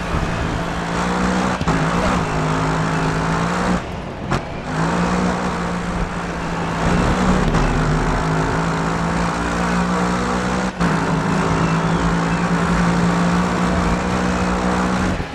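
A race car engine roars loudly, shifting gears as it speeds up.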